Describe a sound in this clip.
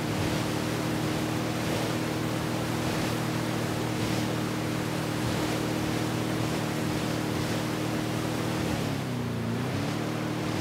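Water splashes and rushes past a speeding boat.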